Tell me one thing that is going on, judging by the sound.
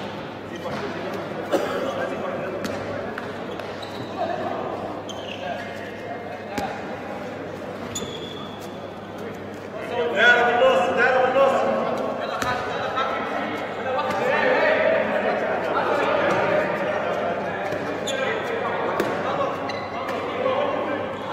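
A ball bounces on a hard floor in a large echoing hall.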